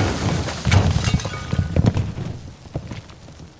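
Water sprays hard from a broken pipe.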